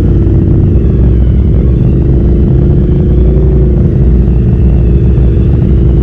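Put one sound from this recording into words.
Tyres rumble and bump over rough ground.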